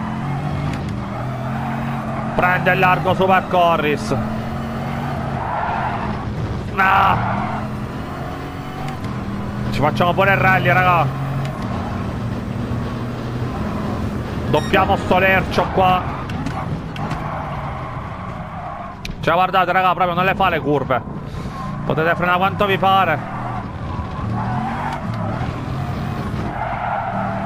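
A racing car's engine roars at high speed, shifting up and down through the gears.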